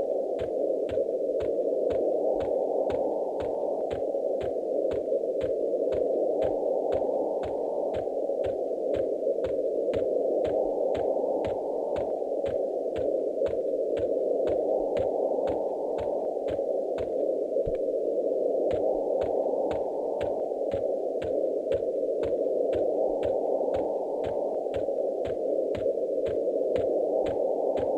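Footsteps fall quickly and evenly on grass.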